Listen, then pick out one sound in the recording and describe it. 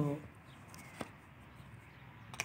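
A phone battery clicks into place.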